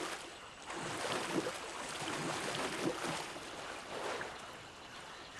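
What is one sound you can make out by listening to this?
Water splashes as a man wades through it.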